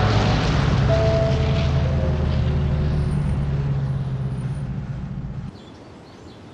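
A van engine rumbles as the van drives away on a dirt road.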